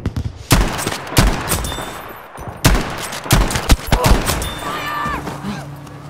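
A rifle bolt clicks as it is worked.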